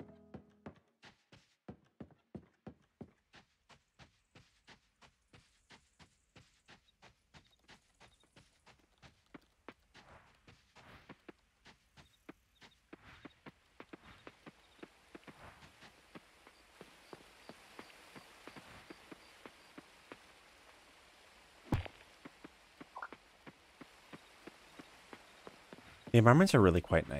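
Footsteps patter steadily on grass and dirt.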